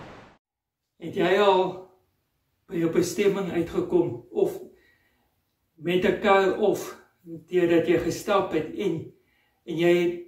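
A middle-aged man speaks calmly and clearly into a microphone nearby.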